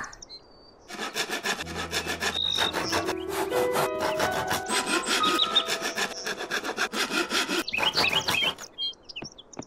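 Wooden boards knock and clatter rapidly as they are fixed into place.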